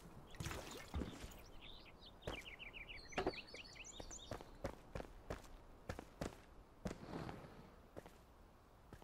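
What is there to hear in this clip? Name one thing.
Footsteps thud on stone at an easy walking pace.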